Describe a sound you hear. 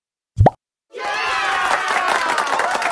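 A cheerful celebratory jingle plays.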